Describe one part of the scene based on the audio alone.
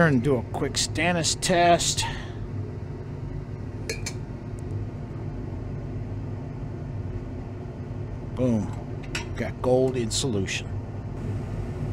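A glass rod clinks against a glass beaker while stirring liquid.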